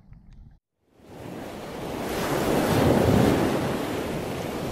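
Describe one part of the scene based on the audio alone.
Water splashes and churns as a swimmer kicks with a fin.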